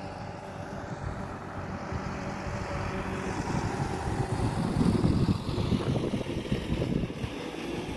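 A truck drives past on the road.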